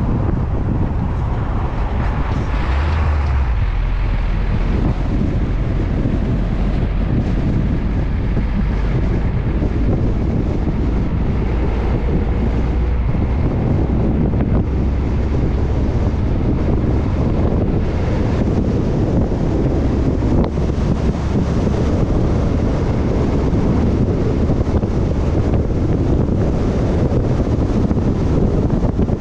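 Wind buffets loudly against the vehicle.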